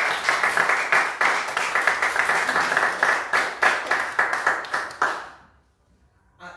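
An audience applauds loudly in a small room.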